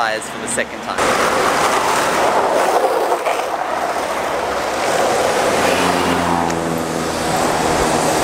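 Skateboard wheels roll along asphalt with a rough rumble.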